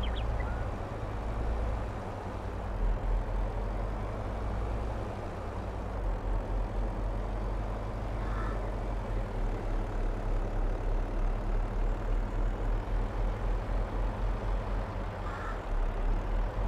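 A heavy truck engine rumbles steadily as the truck drives slowly.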